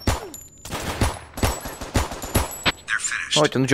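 A pistol fires several sharp shots indoors.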